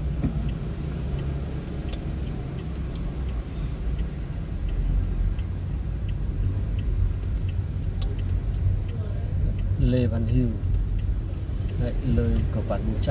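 A car engine hums low and steady from inside the car.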